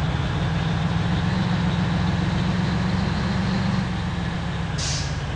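A bus engine hums with a steady low drone.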